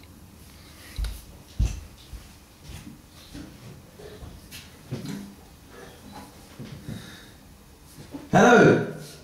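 Footsteps and knocks sound nearby.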